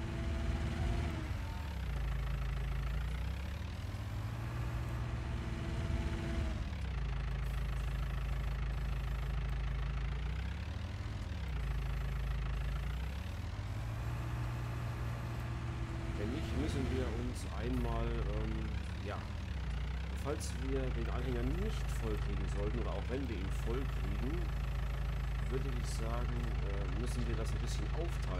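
A diesel engine hums and revs up and down.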